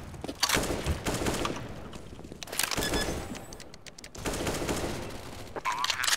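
A keypad beeps as a bomb is armed.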